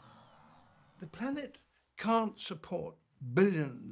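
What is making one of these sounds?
An elderly man speaks calmly and closely into a microphone.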